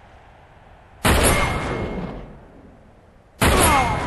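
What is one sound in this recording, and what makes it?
A rifle fires loud, booming shots that ring out and fade.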